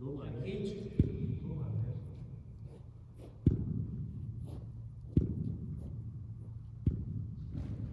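A cricket bat taps on artificial turf.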